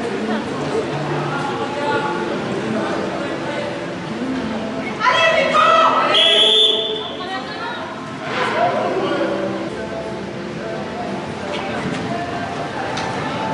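Young riders call out to each other in a large echoing hall.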